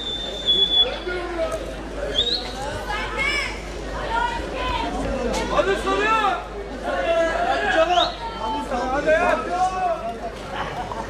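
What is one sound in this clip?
A man shouts instructions nearby.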